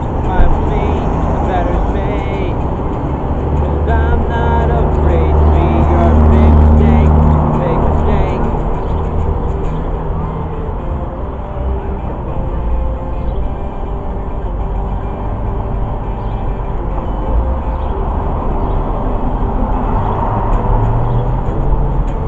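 An electric guitar plays loudly outdoors.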